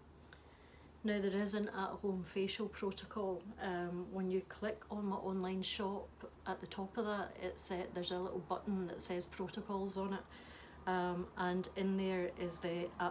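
A woman talks calmly and clearly to the listener from close by.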